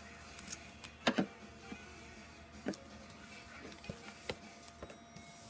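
A wooden rod taps and knocks against a table.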